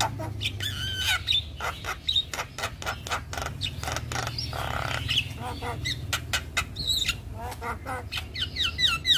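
A bird sings loudly nearby with varied whistles, clicks and chatter.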